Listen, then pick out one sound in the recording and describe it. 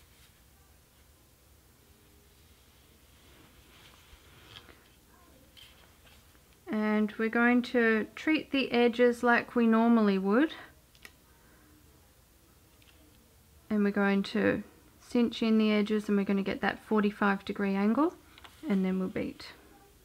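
Yarn rustles softly as fingers weave it through taut threads.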